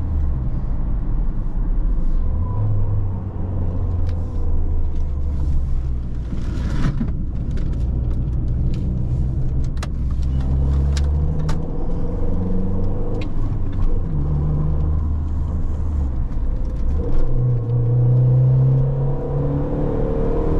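A small car engine hums from inside the cabin and rises and falls as the gears change.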